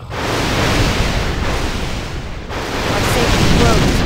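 Magic spells blast and whoosh.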